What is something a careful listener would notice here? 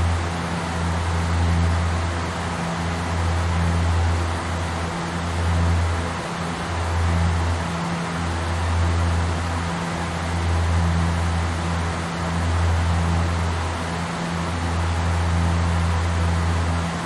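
Aircraft engines drone steadily with a low hum.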